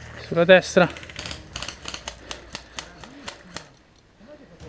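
An airsoft gun fires a rapid series of sharp clicks.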